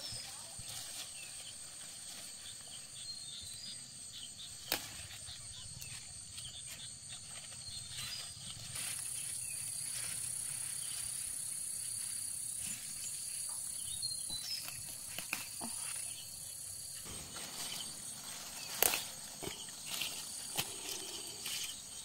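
Leaves rustle and stems snap softly as plants are picked by hand.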